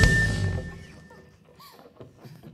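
A band ends a song with a loud chord that rings out and fades.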